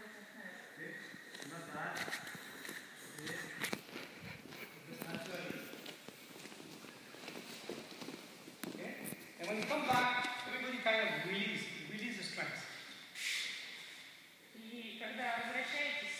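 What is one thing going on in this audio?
A middle-aged man speaks calmly and steadily, explaining, in an echoing hall.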